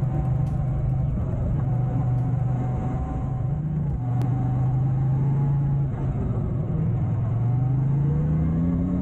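A motorcycle engine hums steadily, its pitch rising and dipping with the throttle.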